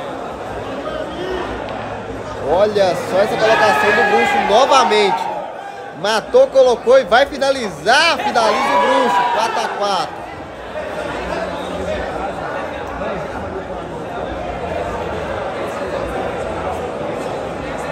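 A crowd murmurs around the room.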